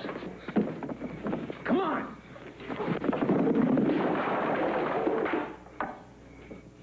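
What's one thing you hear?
Men scuffle and bang against crates.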